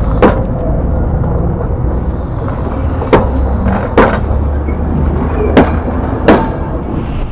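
Train wheels clack sharply over rail joints.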